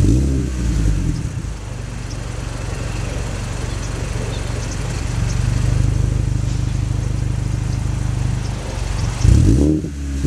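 A car engine idles with a deep, steady exhaust rumble.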